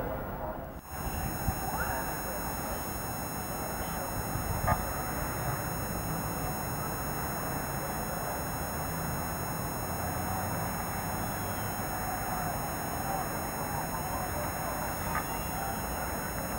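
A large crowd roars and chants in the distance outdoors.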